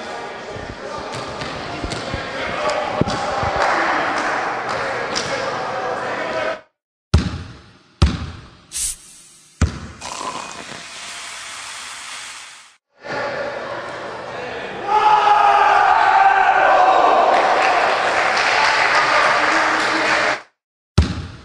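A crowd of young men cheers and shouts in a large echoing hall.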